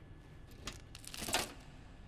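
A hand thumps against a wooden box.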